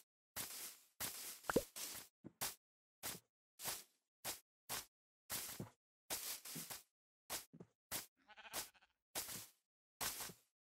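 Footsteps crunch rhythmically on grass.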